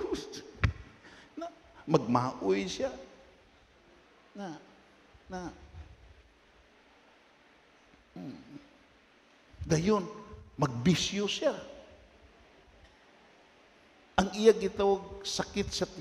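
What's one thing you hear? An elderly man speaks calmly through a microphone in an echoing hall, with pauses.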